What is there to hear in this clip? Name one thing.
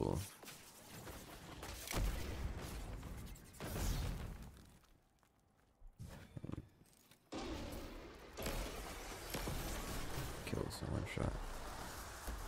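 A heavy energy weapon fires with sharp blasts.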